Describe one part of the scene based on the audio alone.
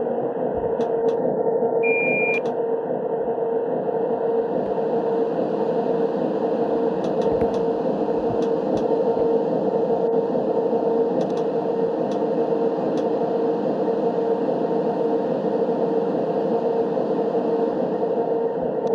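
A train engine hums steadily.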